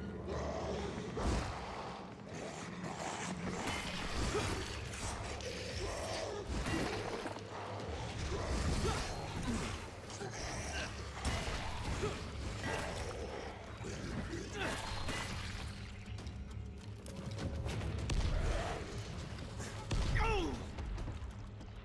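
A heavy mace swings and thuds into bodies again and again.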